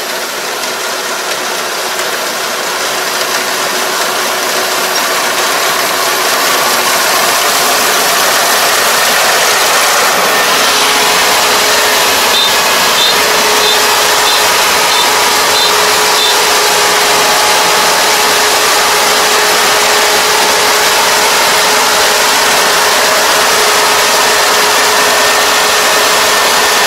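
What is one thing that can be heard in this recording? A combine harvester engine drones steadily, growing louder as it approaches.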